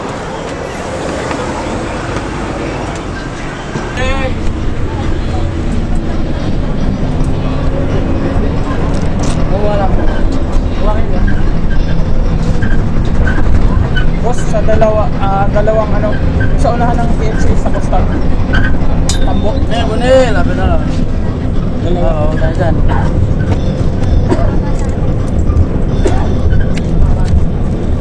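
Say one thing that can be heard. A bus engine rumbles steadily.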